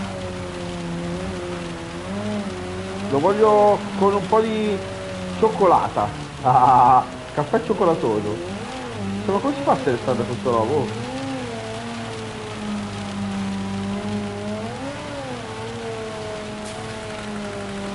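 A racing car engine hums and revs steadily.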